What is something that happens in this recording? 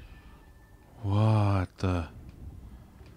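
A man exclaims loudly in a drawn-out voice into a microphone.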